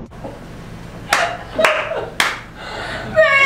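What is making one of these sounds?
A young man claps his hands a few times.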